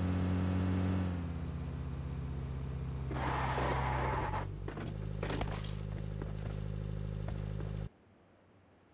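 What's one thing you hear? A vehicle engine rumbles steadily while driving, then idles and cuts off.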